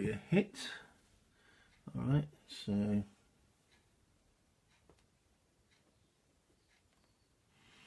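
Cardboard game pieces click softly onto a board.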